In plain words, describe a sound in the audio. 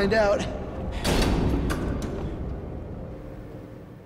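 A heavy metal pipe strikes with a loud crash that echoes away.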